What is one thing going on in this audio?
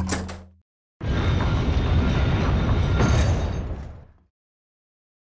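A heavy door grinds open.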